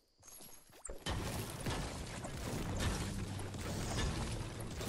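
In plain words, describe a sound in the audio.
A pickaxe strikes a brick wall again and again.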